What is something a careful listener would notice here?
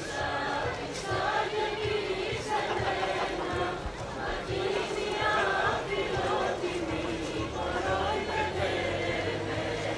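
A folk band plays a lively tune outdoors.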